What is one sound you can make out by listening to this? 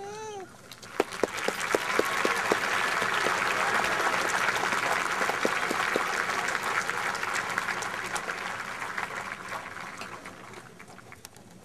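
A large outdoor crowd claps and cheers.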